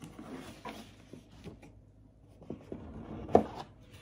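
A box lid scrapes as it is lifted.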